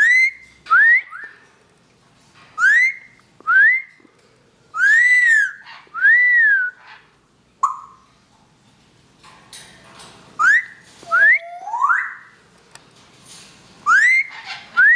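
A parrot whistles and squawks loudly in short rising calls, close by.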